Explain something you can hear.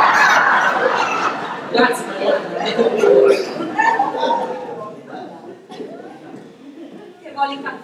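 Adult actors speak with animation, heard in a reverberant hall.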